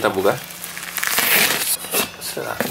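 A blade slices through plastic wrap.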